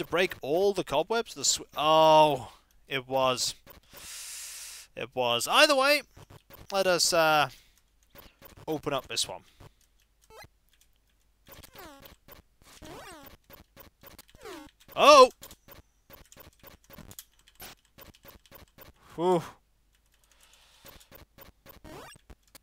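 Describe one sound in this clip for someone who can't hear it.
Electronic video game sound effects chirp and bleep in quick glides.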